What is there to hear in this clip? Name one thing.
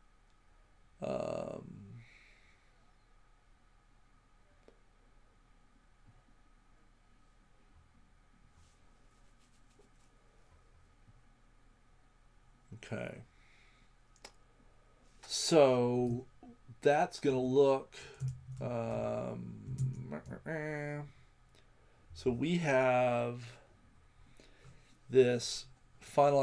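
A man speaks into a microphone in short bursts, calmly and with pauses.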